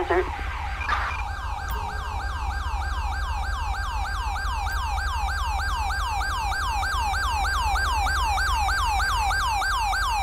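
A police siren wails nearby, rising and falling quickly.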